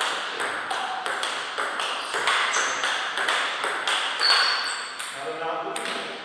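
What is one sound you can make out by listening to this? A table tennis ball clicks back and forth off paddles and a table in a quick rally.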